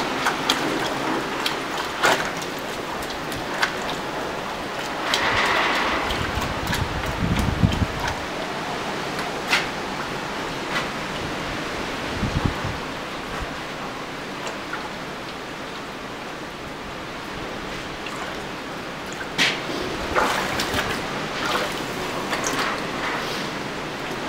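Metal tongs clink against a bucket's rim.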